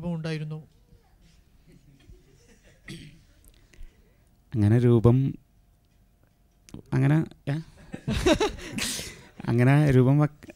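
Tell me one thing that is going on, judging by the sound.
A man sings into a microphone in short phrases.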